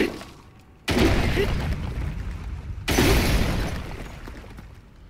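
A hammer smashes rock, which crumbles and rumbles.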